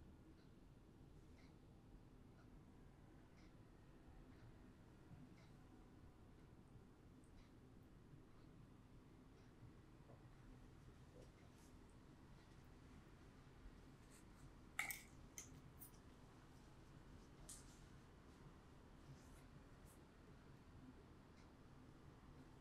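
Small metal tools scrape and click softly close by.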